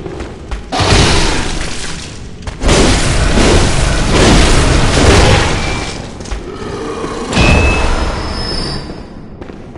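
Heavy blows and a loud struggle crash in a fight.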